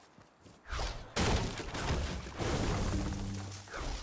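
A pickaxe strikes a wooden wall several times.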